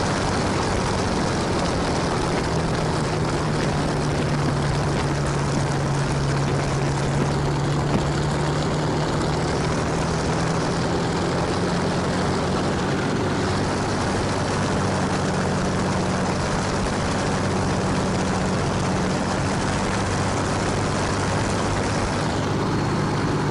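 A piston aircraft engine drones loudly and steadily, its pitch rising and falling slightly.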